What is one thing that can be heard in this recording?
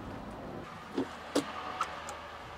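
A doorbell rings.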